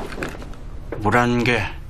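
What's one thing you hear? A young man speaks in a low voice nearby.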